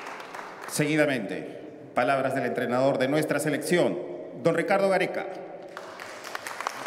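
A man announces loudly and formally.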